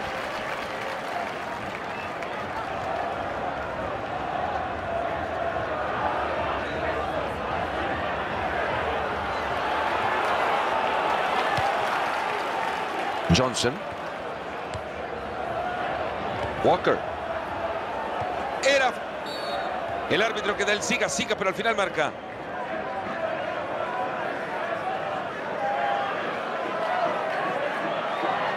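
A stadium crowd murmurs and chants.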